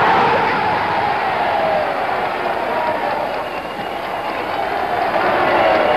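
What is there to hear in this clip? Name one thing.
Several men shout excitedly close by.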